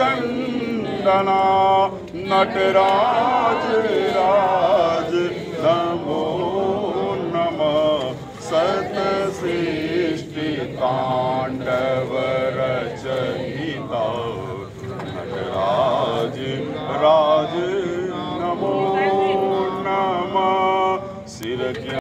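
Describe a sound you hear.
A group of men chant steadily together nearby.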